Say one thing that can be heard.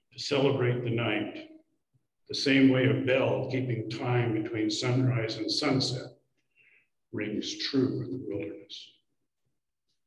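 An elderly man speaks calmly into a microphone, heard through an online call.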